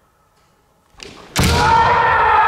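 A bamboo sword strikes a padded helmet with a sharp crack.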